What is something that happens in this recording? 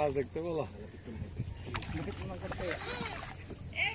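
A fish splashes and thrashes at the surface of the water.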